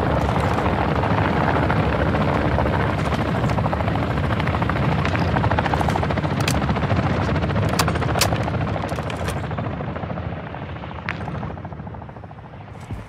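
An aircraft engine roars steadily, then fades away.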